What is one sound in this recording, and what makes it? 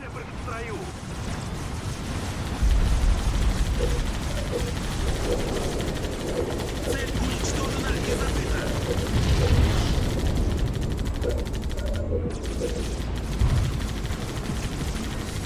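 Gunfire crackles and explosions rumble in a distant battle.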